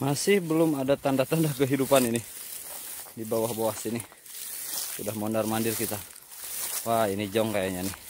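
Footsteps crunch on dry grass.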